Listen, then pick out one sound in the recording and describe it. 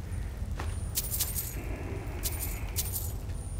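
Coins clink and jingle.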